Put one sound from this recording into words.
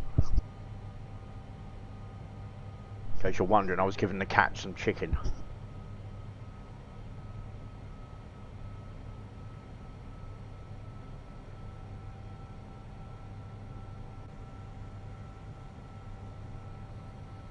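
Jet engines hum steadily.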